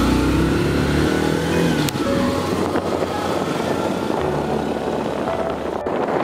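A motorbike engine hums and revs up close.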